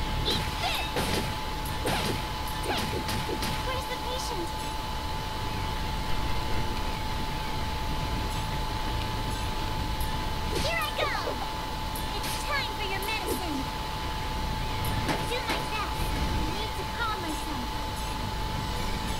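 Video game attack hits land with sharp smacks and bursts.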